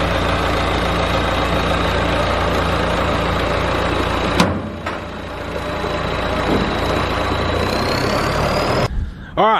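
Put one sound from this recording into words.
A small engine runs with a steady hum nearby.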